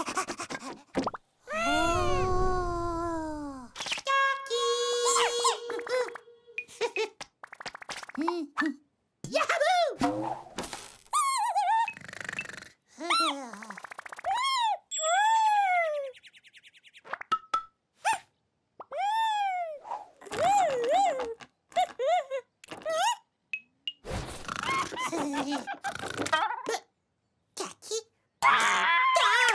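A small cartoon chick chirps and squeaks in high, excited bursts.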